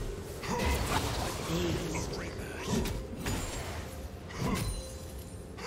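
Video game spell effects whoosh and burst during a fight.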